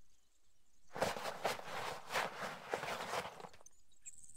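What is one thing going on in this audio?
A rifle fires a quick burst of shots close by.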